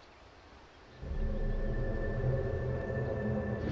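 A magical teleport hums low and steadily.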